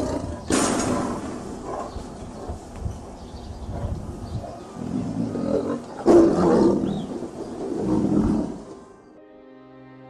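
A tiger roars and growls loudly.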